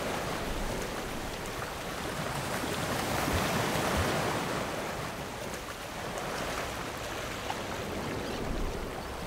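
A breaking wave roars and churns loudly all around.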